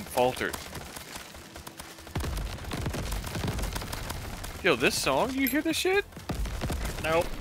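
Laser guns zap and whine in quick bursts.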